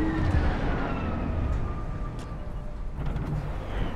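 A car engine hums and winds down.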